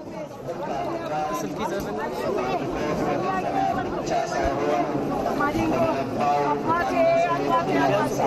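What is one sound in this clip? A crowd of men talks and calls out all around, close by.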